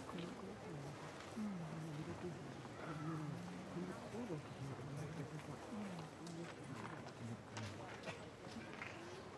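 A man chants slowly in a low voice.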